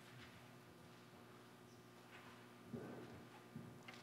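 A woman's footsteps tap on a tiled floor.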